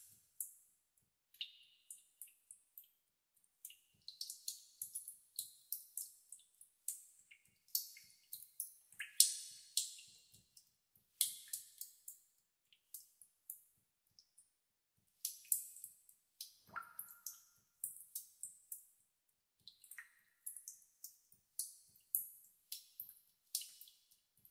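Water drops fall one after another and plink into still water.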